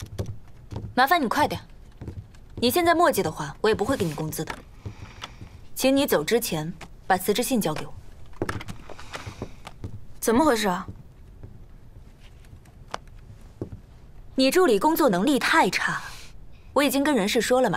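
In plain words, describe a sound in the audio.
A young woman speaks sternly and firmly nearby.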